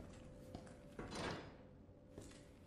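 A metal gate creaks open.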